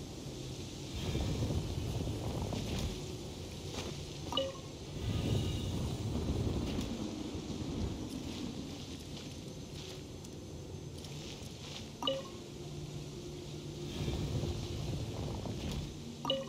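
A heavy stone mechanism rumbles and grinds as it turns.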